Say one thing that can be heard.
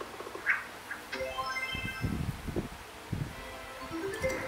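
A bright chiming jingle plays from a mobile game.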